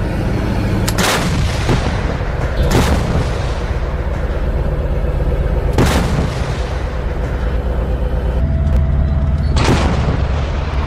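A tank gun fires with loud, echoing booms.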